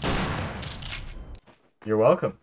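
A gunshot bangs and rings out.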